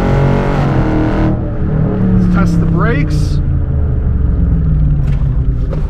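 A car engine rumbles and revs throughout.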